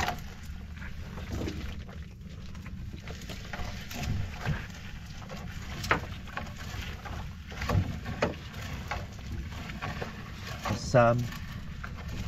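A fishing net rustles and swishes as it is hauled into a boat.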